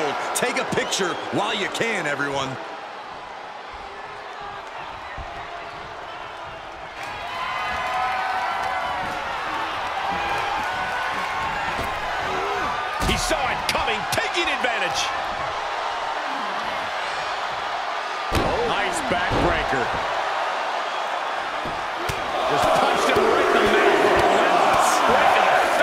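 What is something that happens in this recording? A large crowd cheers and roars in a big echoing arena, swelling louder near the end.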